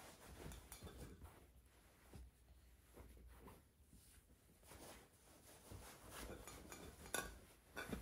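A canvas bag rustles as it is handled.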